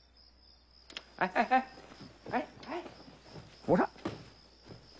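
A man shouts urgently for help.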